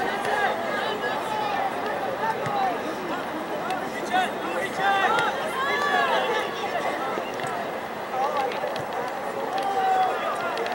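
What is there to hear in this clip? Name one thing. Young men shout to each other from across an open field.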